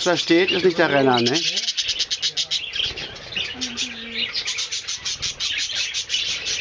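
Budgies chirp rapidly and constantly nearby.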